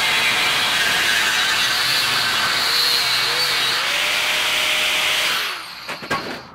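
An angle grinder screeches loudly as it grinds steel.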